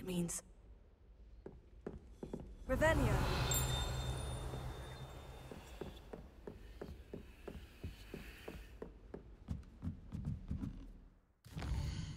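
Footsteps walk steadily across a wooden floor.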